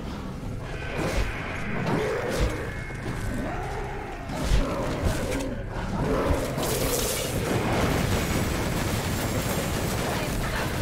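Monsters are struck by blows and spells in a game fight.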